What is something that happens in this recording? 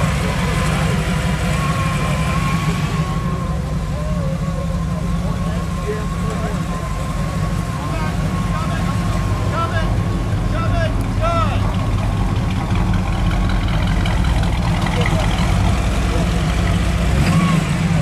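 A car engine idles with a low, steady rumble.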